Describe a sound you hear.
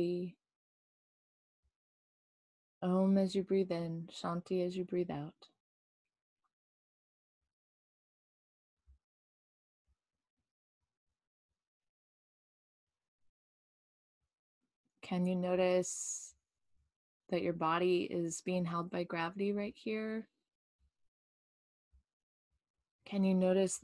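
A woman speaks calmly and softly into a microphone close by, with long pauses.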